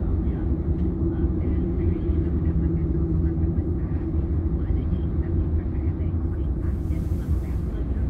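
A car engine hums steadily from inside a car moving slowly in traffic.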